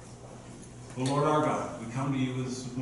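A middle-aged man speaks calmly into a microphone in a large room.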